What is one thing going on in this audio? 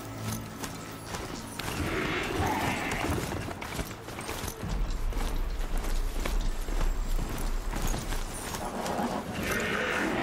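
Heavy mechanical footsteps thud and clank steadily over snowy ground.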